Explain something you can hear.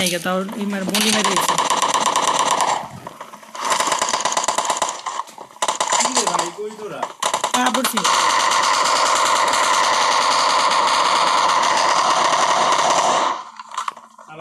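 Rapid automatic gunfire rattles in long bursts.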